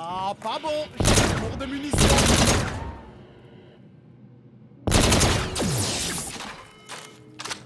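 A video game gun fires loud, buzzing bursts.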